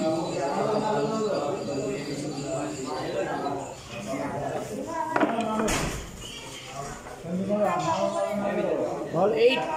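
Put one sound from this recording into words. Several men talk with animation nearby.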